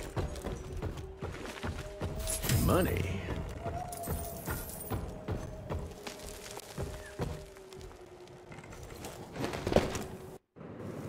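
Wooden planks crash and splinter as they break.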